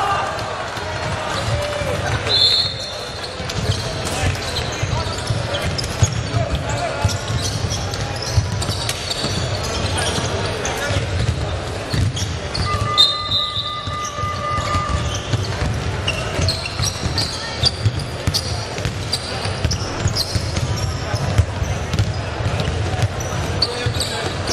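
Basketballs bounce on a wooden court in a large echoing hall.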